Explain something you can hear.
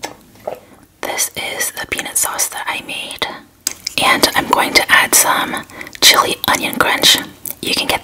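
A young woman talks close to a microphone with animation.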